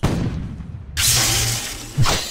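An energy blast whooshes and crackles loudly.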